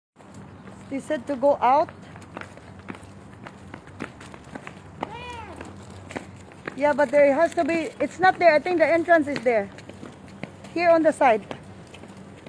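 A woman speaks animatedly close to the microphone, outdoors.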